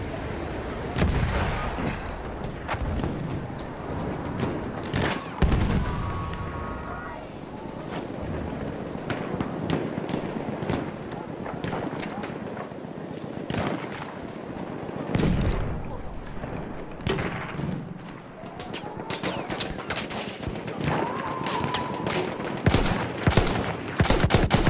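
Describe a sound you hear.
A rifle fires in sharp, loud cracks.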